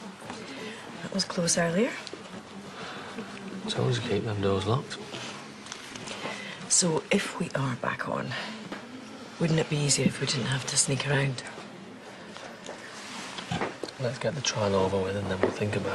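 A man talks nearby in a calm, low voice.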